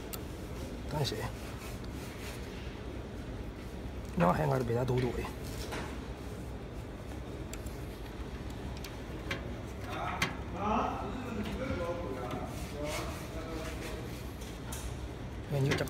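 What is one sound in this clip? Small metal parts click and rattle as a hand works inside a machine.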